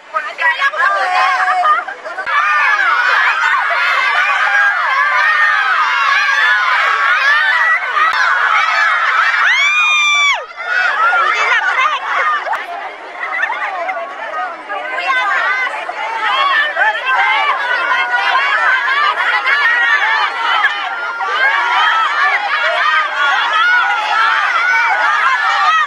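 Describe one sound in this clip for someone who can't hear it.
A crowd of women shouts, cheers and laughs outdoors.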